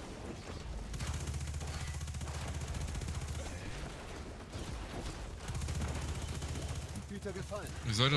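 A rapid-fire gun shoots in fast, steady bursts.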